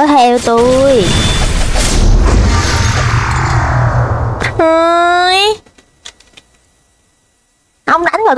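A young girl exclaims with animation close to a microphone.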